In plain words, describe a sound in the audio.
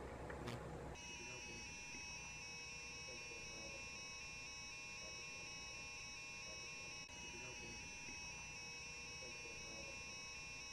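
An electronic leak detector beeps.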